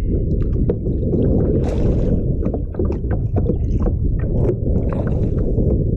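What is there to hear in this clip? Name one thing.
A kayak paddle dips and splashes in the water.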